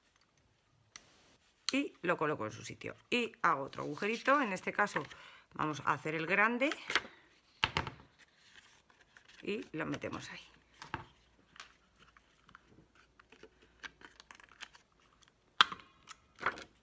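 A hand punch clicks sharply as it punches through paper.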